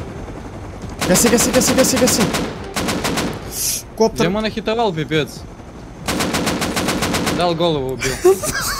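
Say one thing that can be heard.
A helicopter's rotor thumps loudly close overhead.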